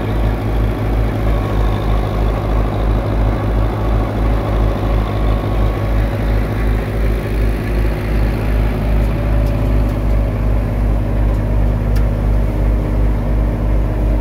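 A tractor engine chugs loudly and steadily close by.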